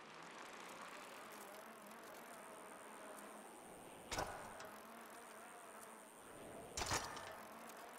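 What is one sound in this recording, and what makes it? A bicycle rolls steadily along a smooth surface.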